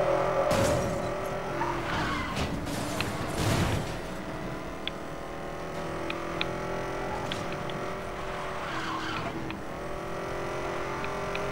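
A car engine roars steadily at high speed.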